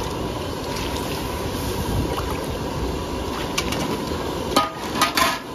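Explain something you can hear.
Liquid sizzles and bubbles in a hot wok.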